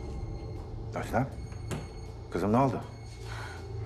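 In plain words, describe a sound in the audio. A man speaks in a low, serious voice nearby.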